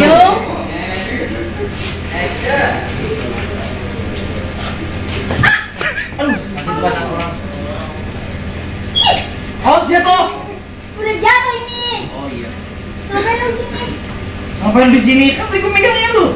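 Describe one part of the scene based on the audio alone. A young woman cries out and pleads close by.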